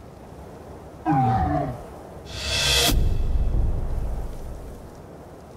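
A video game plays a bright chime with a low whoosh.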